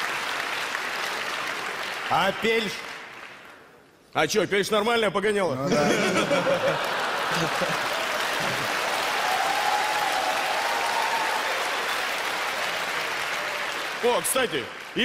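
A large audience laughs loudly.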